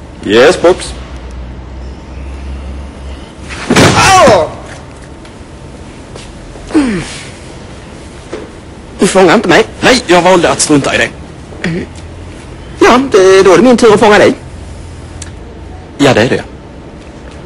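A second man answers in short bursts nearby.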